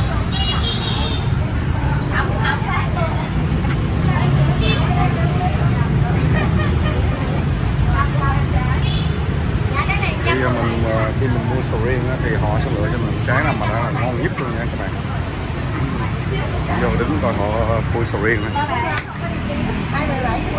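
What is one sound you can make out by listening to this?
Women talk nearby with animation.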